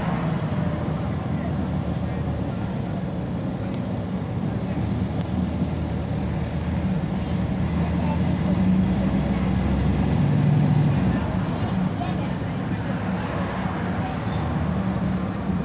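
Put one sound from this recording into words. A diesel city bus engine drones from inside as the bus drives at speed.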